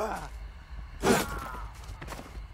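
An axe strikes a body with a heavy thud.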